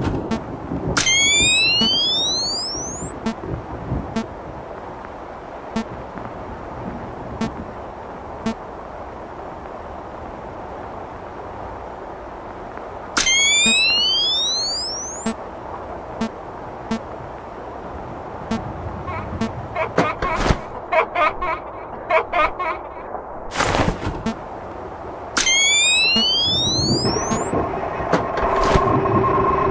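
Loud electronic static hisses and crackles in bursts.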